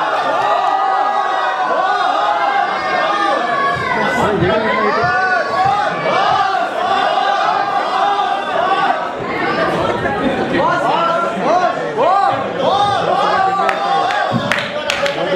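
Several people sing together through loudspeakers in a large hall.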